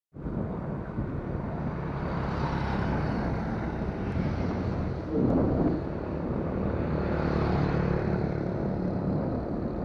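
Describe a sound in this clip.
A motorbike engine hums steadily as it rides along a road.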